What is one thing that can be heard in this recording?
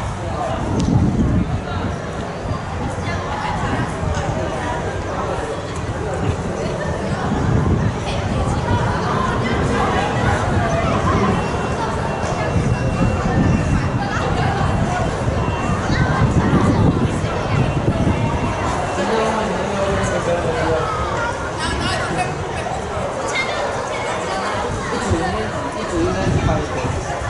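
Wind buffets the microphone in gusts.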